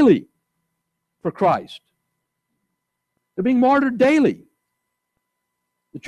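A man speaks slowly and calmly through a microphone in an echoing hall.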